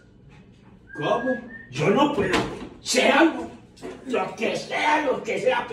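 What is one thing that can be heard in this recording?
An older man exclaims loudly and with excitement close by.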